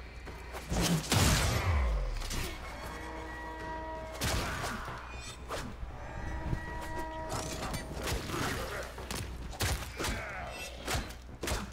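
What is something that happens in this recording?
A blade swishes and clashes in melee strikes.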